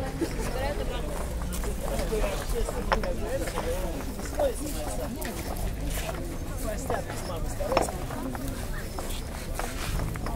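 Paving stones clack and knock as they are pried up and stacked.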